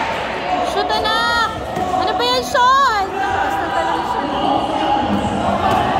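Sneakers squeak on a court during a basketball game.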